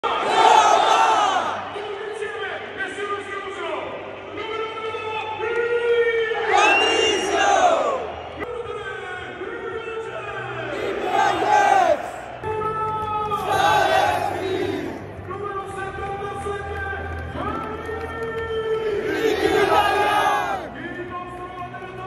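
A young man sings loudly close by.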